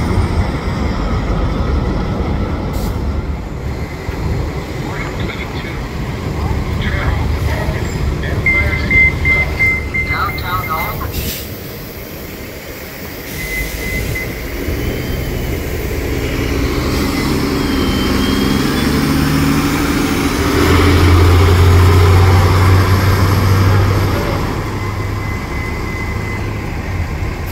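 A bus engine rumbles and idles nearby.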